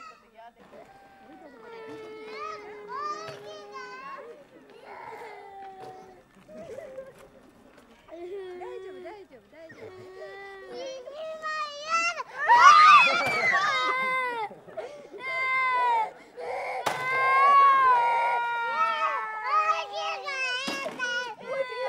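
Small children cry and shout close by.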